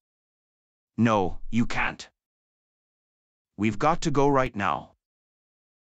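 A man speaks firmly and urgently, close to the microphone.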